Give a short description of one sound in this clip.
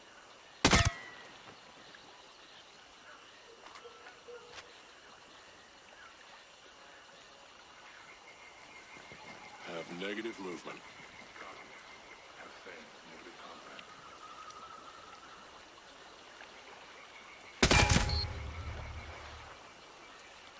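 A rifle fires a loud shot that echoes through the woods.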